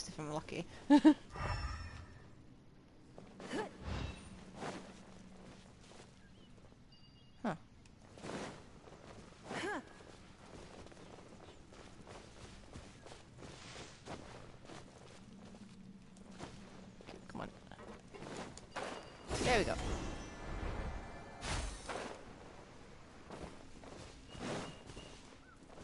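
Game sound effects whoosh and chime as a character flies and attacks.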